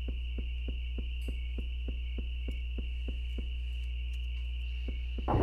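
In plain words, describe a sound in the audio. Quick footsteps tap evenly on a hard stone floor.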